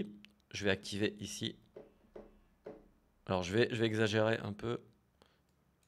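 A man talks close to a microphone, with animation.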